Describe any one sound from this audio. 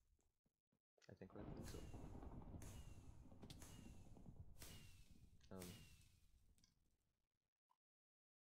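Fireworks burst and crackle in quick succession.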